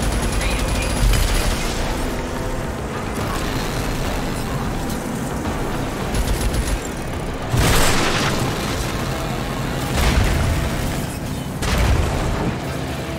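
Gunfire bursts out in short bangs.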